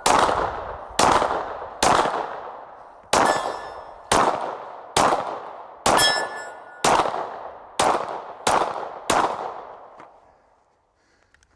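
Pistol shots ring out in rapid succession outdoors, echoing off the trees.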